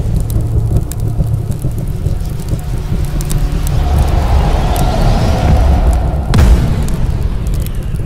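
Small fires crackle and pop.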